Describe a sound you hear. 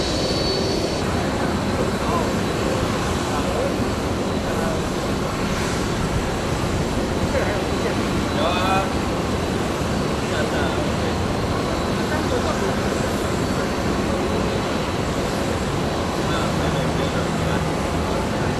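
A tow tractor's diesel engine rumbles steadily as it pulls an airliner.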